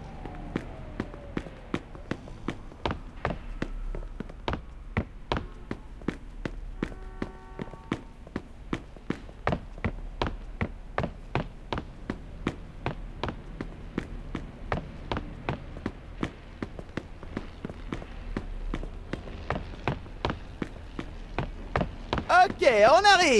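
Footsteps thud steadily on wooden floors and stairs.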